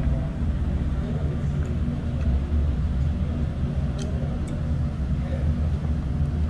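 A middle-aged woman chews food close by.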